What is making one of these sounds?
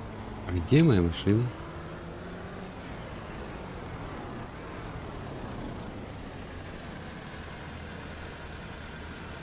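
A tractor engine idles with a low, steady rumble.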